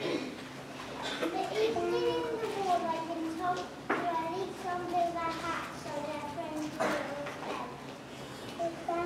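A young boy speaks out loudly to an audience in an echoing hall.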